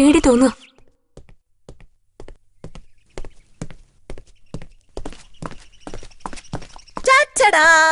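Footsteps tap on wooden stairs.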